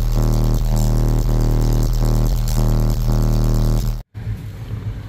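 Loud music with deep, booming bass plays through car speakers.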